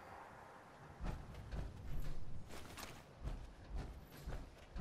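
Heavy metal footsteps thud at a steady walking pace.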